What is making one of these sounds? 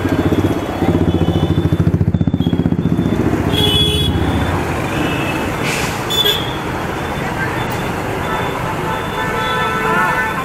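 Traffic rumbles past on a busy street.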